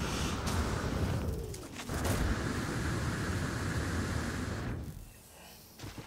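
A jetpack roars with a steady rushing hiss.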